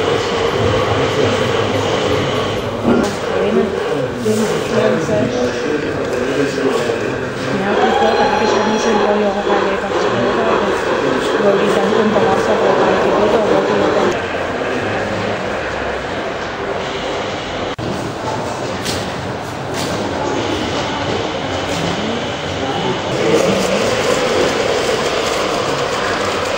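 A garden-scale model train rolls along its track.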